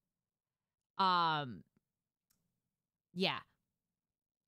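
A young woman squeals in a high voice.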